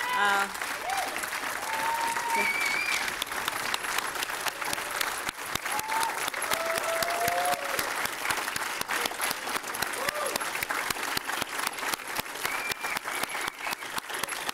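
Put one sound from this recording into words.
People in a crowd cheer and whistle.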